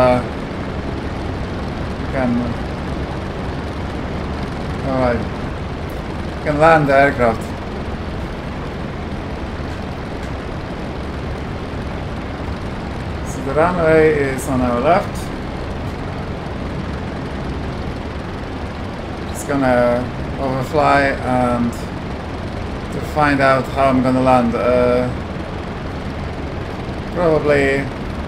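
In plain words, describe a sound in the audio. A propeller engine drones steadily from close by.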